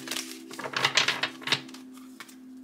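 Playing cards riffle and flutter as they are shuffled by hand.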